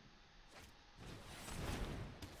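A magical spell whooshes and crackles loudly.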